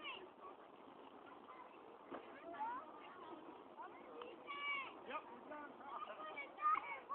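Children shout and call out to each other in the distance outdoors.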